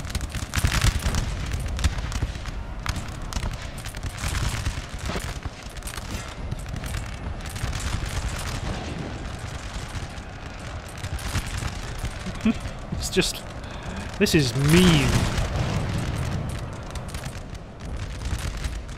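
Cannons boom in deep, heavy blasts.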